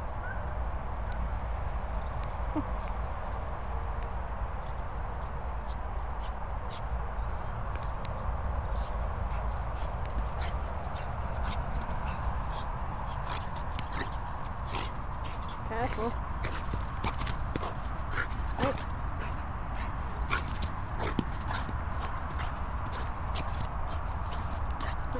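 A dog's paws patter and crunch on frosty grass.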